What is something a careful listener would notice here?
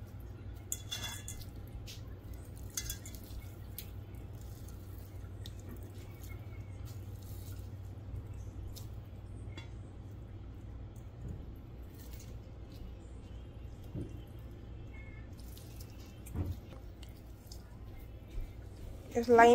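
A lime is squeezed, juice dripping softly.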